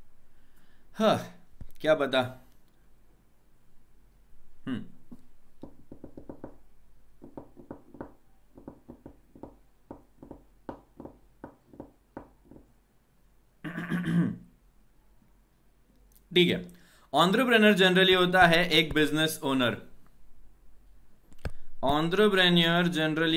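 A young man speaks into a close microphone, explaining with animation.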